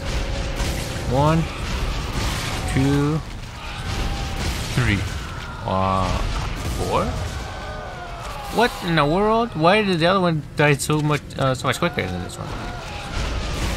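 A large creature roars and screeches.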